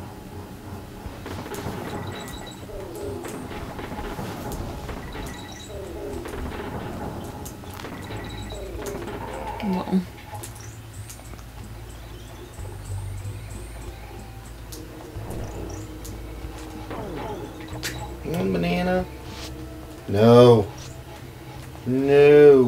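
Retro game music plays throughout.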